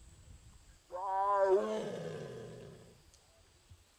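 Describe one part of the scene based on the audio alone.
A tiger lets out a loud, deep groaning roar up close.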